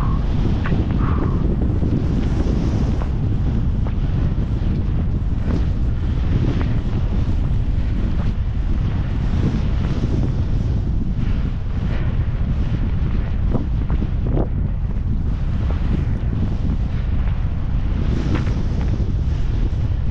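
Wind rushes loudly past, close and rumbling.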